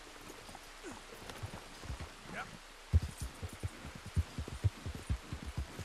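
A horse's hooves thud on the ground at a gallop.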